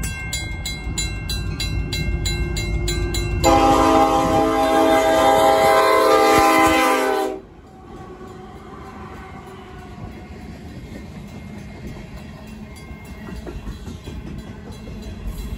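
A train rumbles and clatters past on the tracks.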